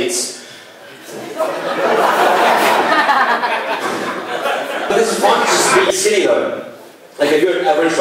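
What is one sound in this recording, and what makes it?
A young man talks with animation into a microphone, heard through loudspeakers in an echoing room.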